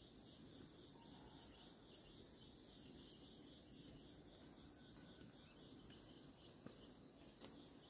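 Footsteps crunch softly on dry soil and leaves.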